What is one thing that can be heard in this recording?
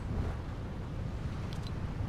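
Water splashes as a figure dives.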